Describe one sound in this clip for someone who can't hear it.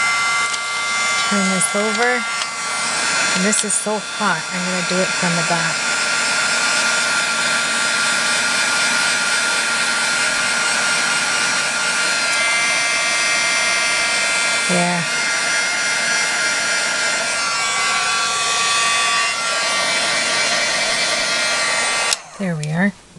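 A heat gun blows with a steady roar, then stops.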